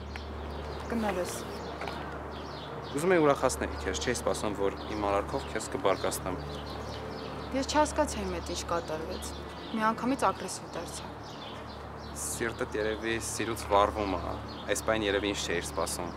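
A young woman talks close by, outdoors.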